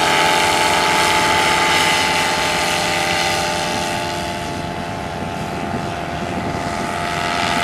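A paramotor engine drones steadily overhead, fading slightly as it moves away.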